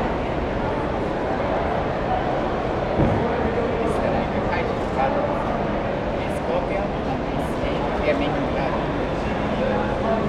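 A crowd of people chatters in the background of a busy room.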